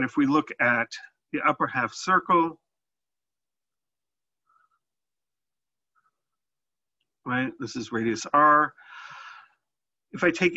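A man talks calmly through a close microphone, pausing between phrases.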